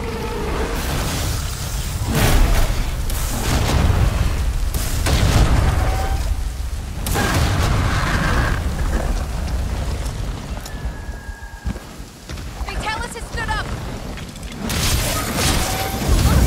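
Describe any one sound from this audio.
Blades slash and clang against a monster's hide.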